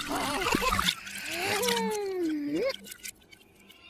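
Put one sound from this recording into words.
A cartoon bird squawks loudly.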